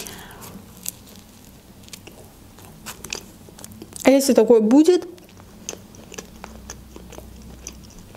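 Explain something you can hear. A young woman chews bread with soft, wet sounds.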